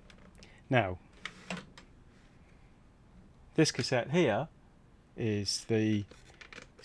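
Plastic cassette cases click and knock as hands handle them.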